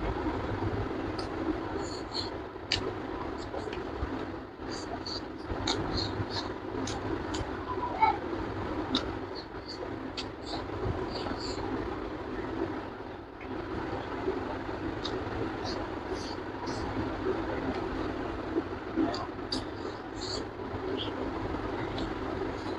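A young man chews and smacks his lips loudly, close up.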